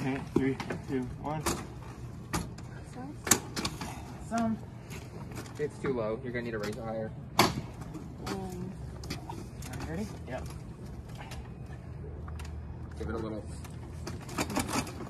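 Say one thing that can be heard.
An ambulance stretcher's metal frame clanks and rattles as it is folded and moved.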